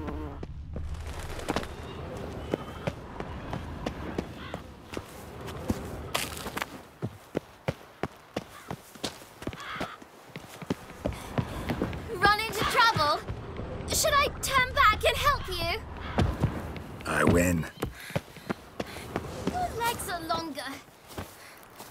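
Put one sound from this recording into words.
Footsteps run quickly over wood and stone.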